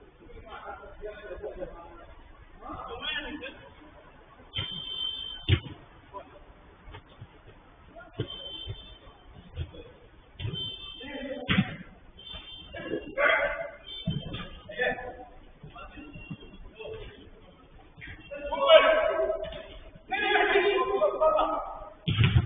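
Young men shout and call out to each other in a large echoing space.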